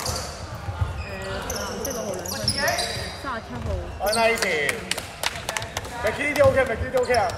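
Young men shout and call out to each other across the hall.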